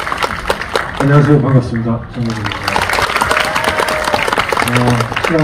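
A young man speaks through a microphone over the applause.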